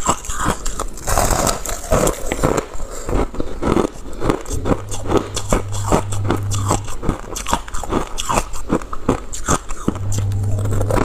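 A young woman crunches ice loudly while chewing.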